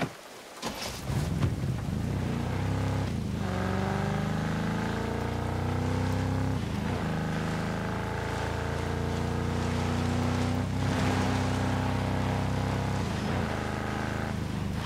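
A vehicle engine starts and revs, then runs steadily as it drives along.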